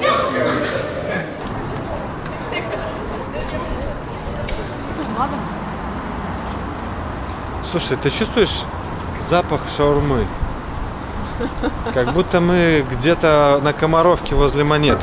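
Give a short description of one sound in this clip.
A busy town street hums outdoors.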